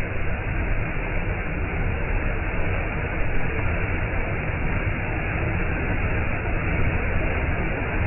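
A waterfall roars steadily, close by, as water rushes and splashes over rocks.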